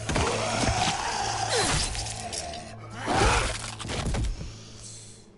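A man grunts and struggles in a violent fight.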